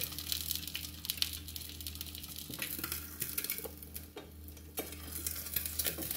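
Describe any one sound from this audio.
Food sizzles and crackles in a frying pan.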